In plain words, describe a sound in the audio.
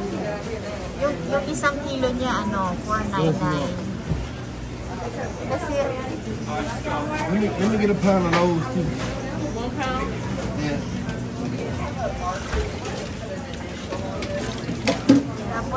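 Water bubbles steadily in a tank.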